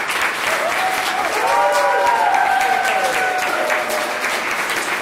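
People in an audience cheer and whoop.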